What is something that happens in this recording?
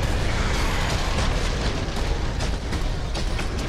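Blows land with repeated sharp hits.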